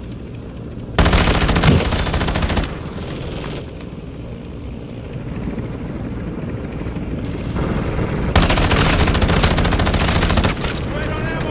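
A rifle fires in loud rapid bursts.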